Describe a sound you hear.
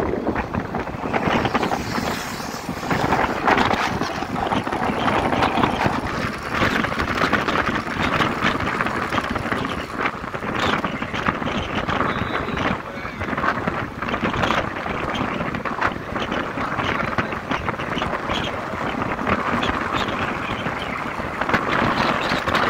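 A motorcycle engine drones at cruising speed.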